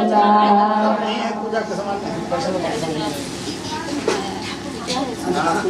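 Women chatter and murmur nearby.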